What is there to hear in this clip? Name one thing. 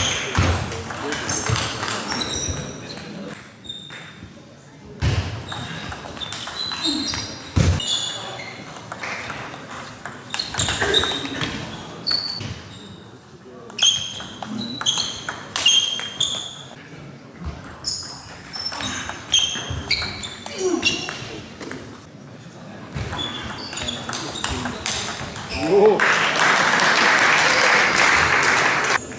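A table tennis ball clicks back and forth on paddles and the table, echoing in a large hall.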